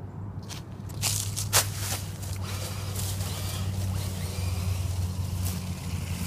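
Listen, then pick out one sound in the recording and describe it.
Footsteps rustle through dry leaves.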